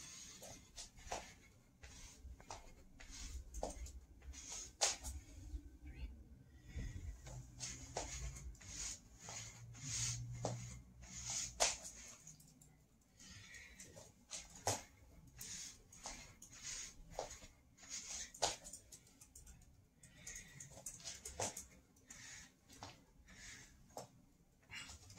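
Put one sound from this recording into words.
Hands and feet thump on a floor in a quick, repeated rhythm.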